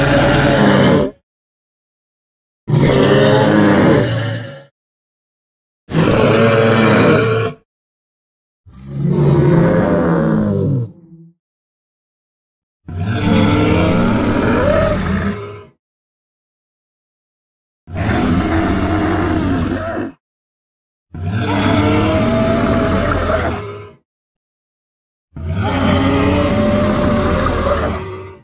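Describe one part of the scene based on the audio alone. A large dinosaur gives deep, honking bellows again and again, with pauses between them.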